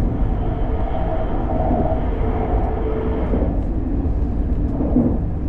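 A train rumbles steadily over a bridge, its wheels droning and clattering on the rails.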